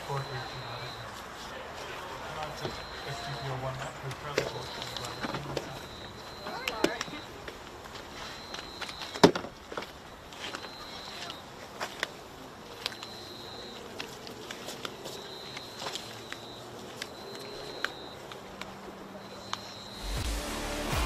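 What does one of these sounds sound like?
Insects chirp in repeated bursts outdoors at night.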